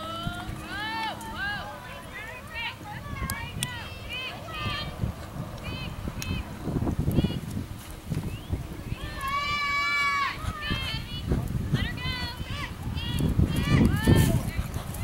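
A horse gallops with hooves thudding on soft dirt.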